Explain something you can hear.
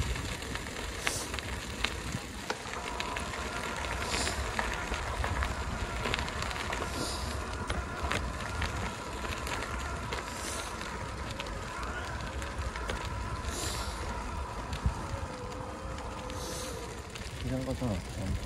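Bicycle tyres crunch and rattle over a gravel path.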